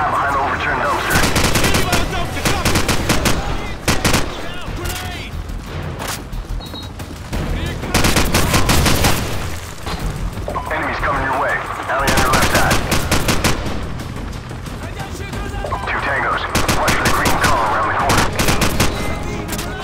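Rapid rifle gunfire bursts out in loud volleys.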